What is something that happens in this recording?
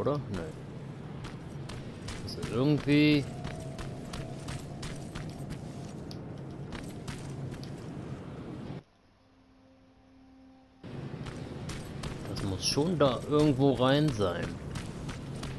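Footsteps crunch on gravel and rock.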